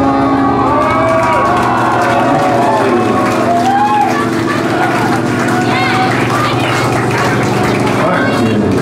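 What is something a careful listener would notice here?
A live band plays loud music in an echoing hall.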